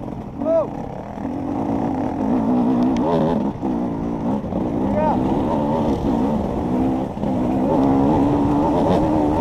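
A dirt bike engine revs and roars up close.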